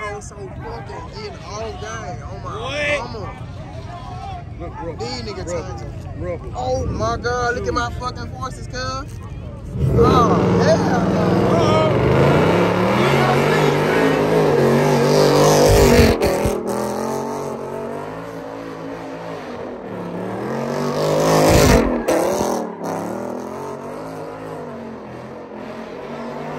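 A crowd of young people shout and cheer outdoors.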